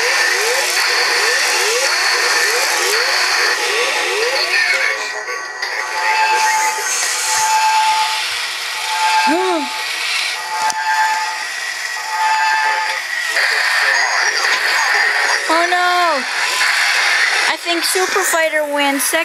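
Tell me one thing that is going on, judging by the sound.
Toy robots play electronic beeps and laser sound effects.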